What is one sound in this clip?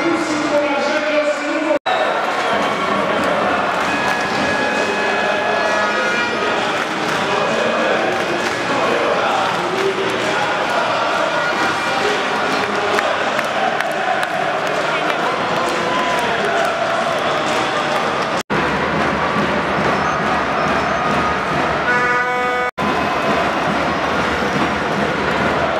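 A large crowd chatters and cheers in a big echoing arena.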